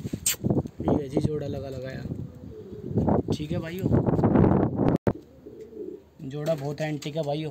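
Pigeons coo with low, throaty calls.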